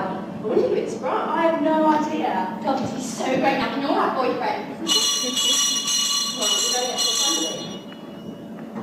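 Young girls speak with animation on a stage, heard from the audience in a large hall.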